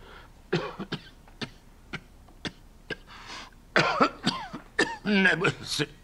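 A man sneezes into a napkin.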